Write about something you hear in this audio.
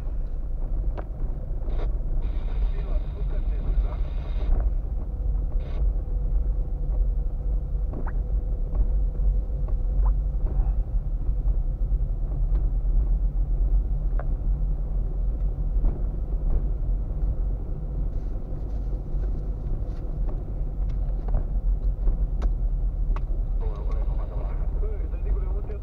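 A car's body rattles and knocks over bumps.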